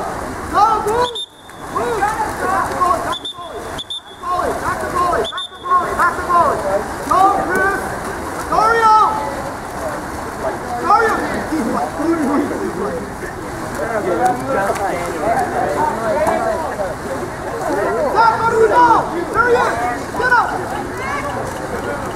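A crowd of people shouts and cheers outdoors.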